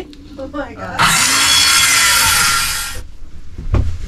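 A circular saw whines as it cuts wood.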